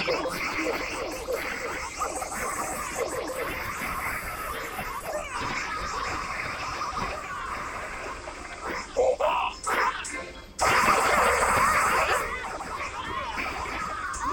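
Small battle sounds of clashing weapons and blasts come from a video game.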